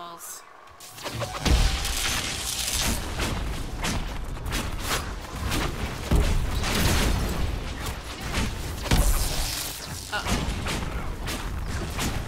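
Magic spells crackle and boom in a fierce fight.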